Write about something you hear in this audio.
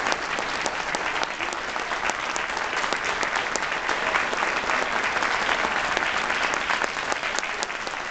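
An audience applauds and cheers in a large echoing room.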